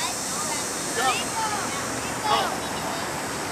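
A man calls out loudly outdoors, a little way off.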